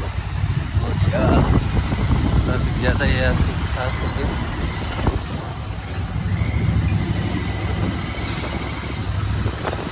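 Nearby motorcycles and cars rumble past in traffic.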